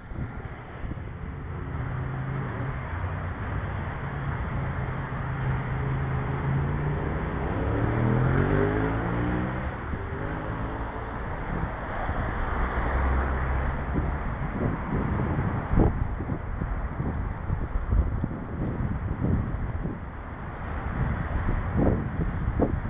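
A vehicle passes by on a nearby road.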